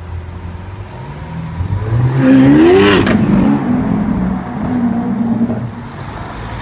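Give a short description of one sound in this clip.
A sports car engine revs up loudly and roars away.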